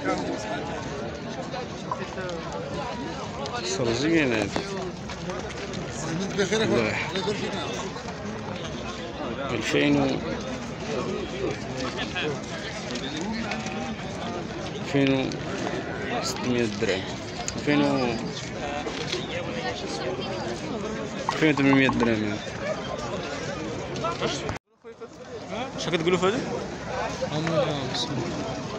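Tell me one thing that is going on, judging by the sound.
A crowd of men murmurs in the background outdoors.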